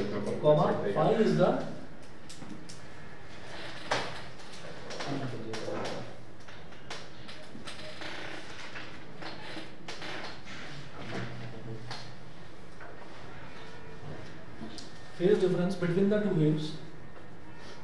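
A man speaks calmly, explaining in short bursts.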